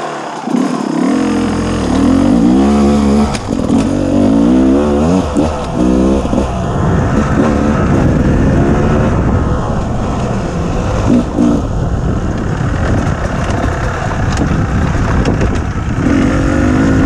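A dirt bike engine revs loudly and changes pitch as it climbs and speeds along.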